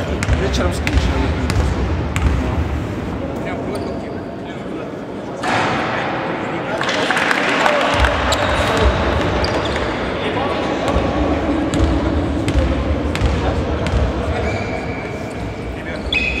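Players call out to each other across the hall.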